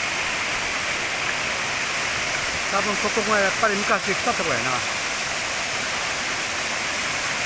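A waterfall roars steadily, splashing into a pool.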